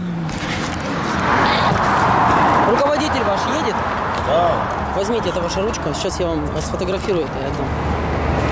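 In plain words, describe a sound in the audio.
A man speaks nearby outdoors.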